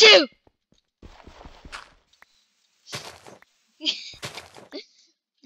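Dirt blocks crunch as they are dug.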